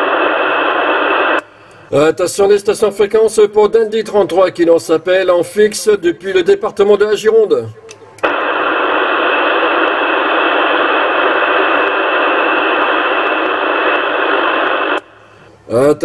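Radio static hisses loudly from a receiver.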